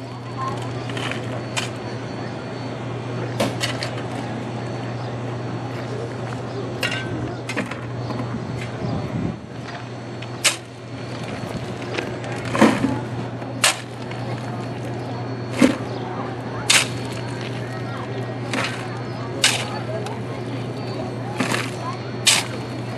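Coal clatters into a plastic bucket.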